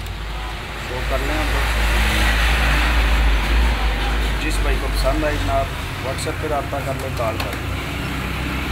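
Pigeons coo softly close by.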